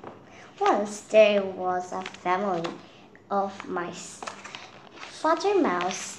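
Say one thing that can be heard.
Book pages flip and rustle.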